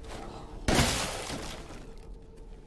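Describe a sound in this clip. Debris bursts apart with a loud crash.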